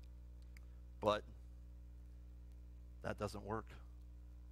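A man speaks calmly into a microphone in a large room, with long pauses.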